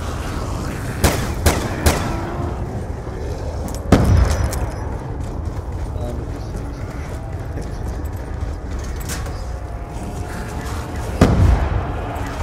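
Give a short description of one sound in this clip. A gun fires several loud shots.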